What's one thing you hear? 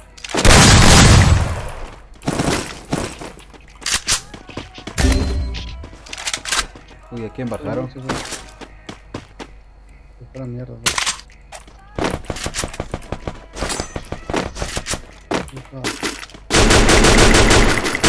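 Footsteps run over grass and floors.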